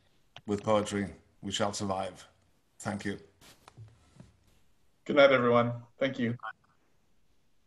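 A middle-aged man speaks with animation over an online call.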